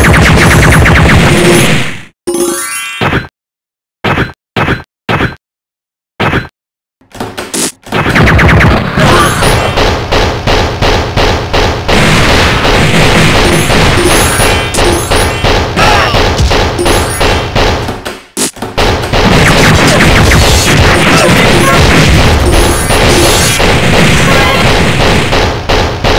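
Rapid gunfire rattles in quick bursts.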